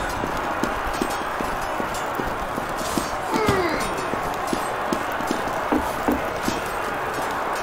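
Footsteps thud quickly and steadily on a hard floor.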